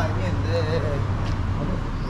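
A young man and a young woman talk as they walk past close by.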